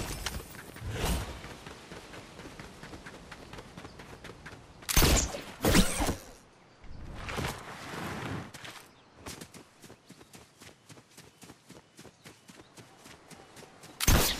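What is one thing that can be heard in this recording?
Footsteps run over the ground.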